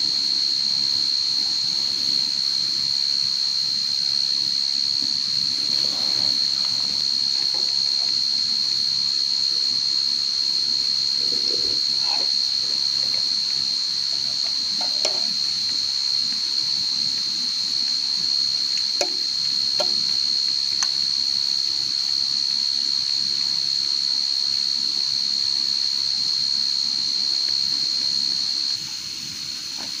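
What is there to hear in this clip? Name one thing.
A pressure lantern hisses steadily.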